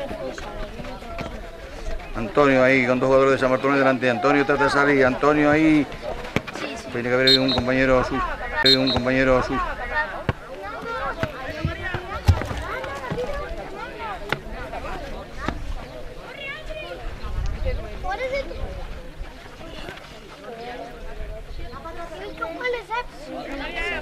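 Children shout to each other outdoors across an open field.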